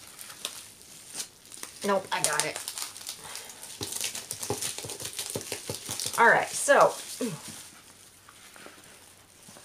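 Wrapping paper rustles as it is handled.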